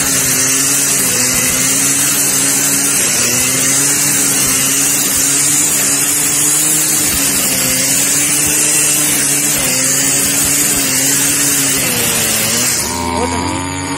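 A brush cutter engine whines steadily, close by.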